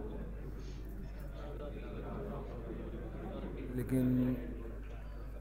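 A crowd of men murmurs and chats nearby.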